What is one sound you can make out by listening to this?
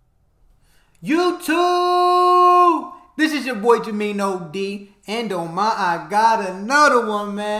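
A man exclaims and talks with animation close to a microphone.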